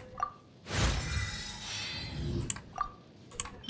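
A bright chime rings out as a level-up jingle plays.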